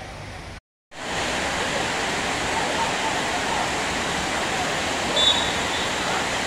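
Heavy rain hisses steadily outdoors.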